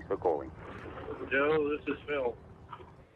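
A man speaks briefly into a phone.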